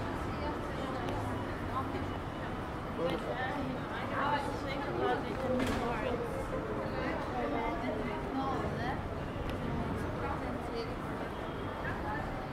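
Passersby chatter quietly on a street outdoors.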